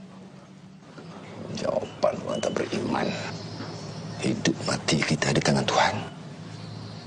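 A middle-aged man speaks in a low, stern voice.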